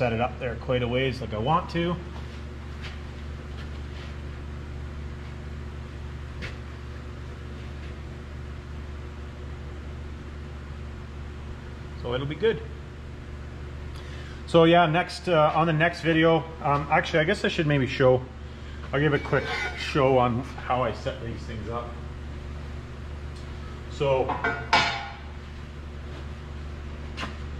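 An electric heater hums steadily.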